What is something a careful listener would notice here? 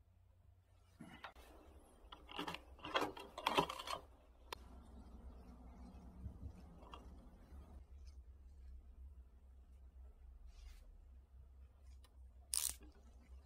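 Plastic crinkles and rustles as it is handled.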